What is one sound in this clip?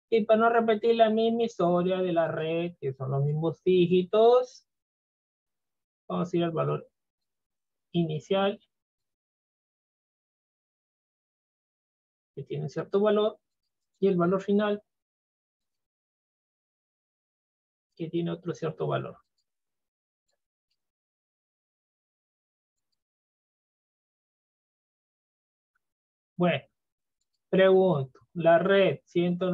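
A man talks calmly in bursts, close to a microphone, with pauses.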